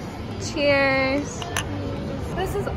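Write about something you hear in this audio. Glasses clink together in a toast.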